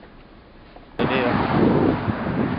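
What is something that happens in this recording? Traffic rumbles past outdoors.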